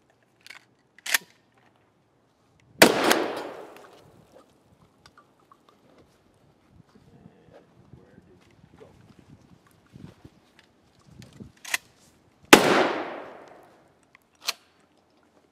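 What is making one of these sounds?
A shotgun's pump action clacks.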